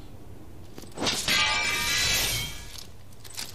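A fiery energy blast whooshes and crackles.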